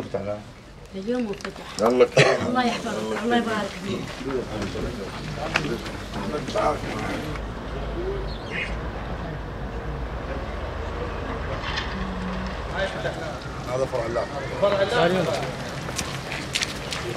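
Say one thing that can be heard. Several men talk nearby in a crowd.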